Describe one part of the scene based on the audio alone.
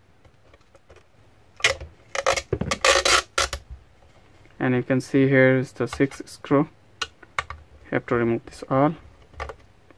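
A screwdriver scrapes and clicks against hard plastic.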